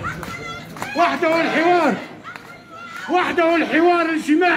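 A man close by shouts loudly.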